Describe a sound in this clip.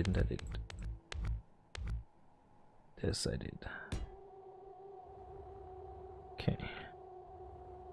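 A man talks calmly through a close microphone in short bursts.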